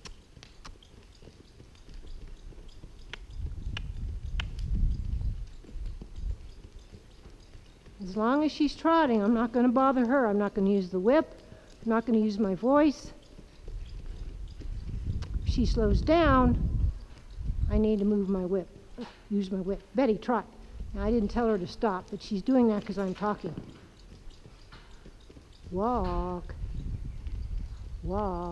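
A small pony trots with soft hoofbeats on sand.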